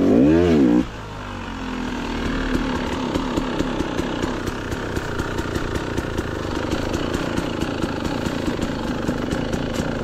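A dirt bike engine putters steadily at low speed.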